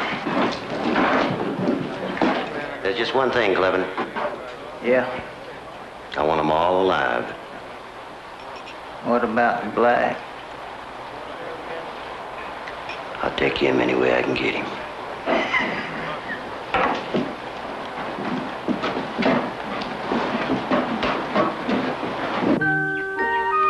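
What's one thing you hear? Several men talk.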